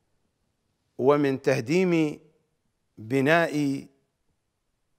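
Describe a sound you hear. A middle-aged man speaks with animation into a close microphone, in short emphatic phrases.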